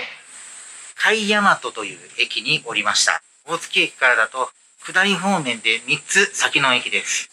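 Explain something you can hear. A middle-aged man speaks calmly close to a microphone.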